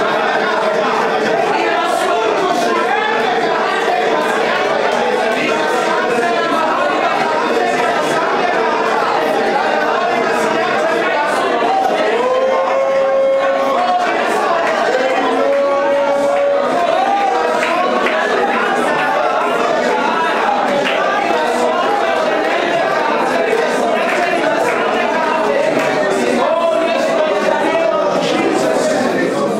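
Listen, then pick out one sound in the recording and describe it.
A crowd of men and women pray aloud together, many voices overlapping.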